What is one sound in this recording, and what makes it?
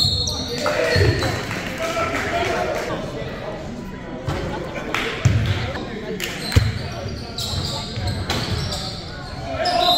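A basketball bounces on a wooden court, echoing in a large hall.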